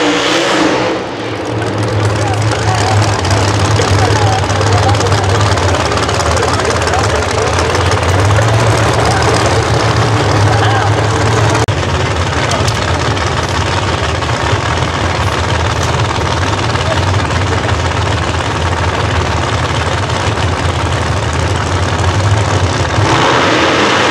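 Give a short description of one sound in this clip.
Race car engines rumble and crackle at idle.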